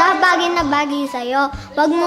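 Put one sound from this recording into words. A young boy speaks calmly nearby.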